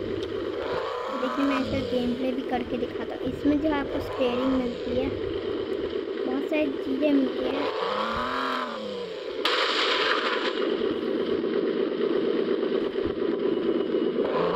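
A sports car engine roars steadily.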